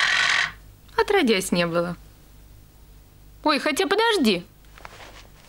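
A young woman speaks softly and with emotion, close by.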